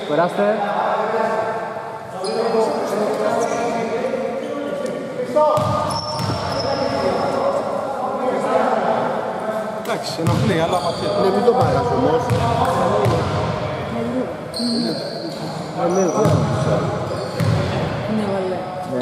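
Men talk and call out nearby in an echoing hall.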